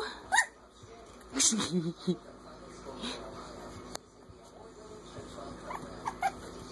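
Puppies whimper and yelp in high little cries.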